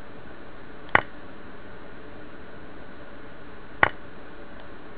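A short clicking tone sounds as a chess piece is moved.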